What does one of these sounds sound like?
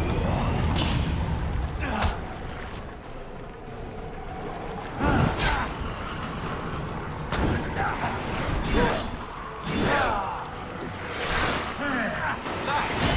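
Blades slash and strike with sharp, ringing hits.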